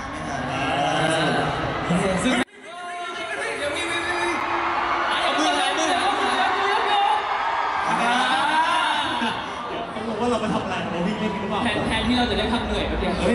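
A young man talks with animation into a microphone, heard over loudspeakers in a large hall.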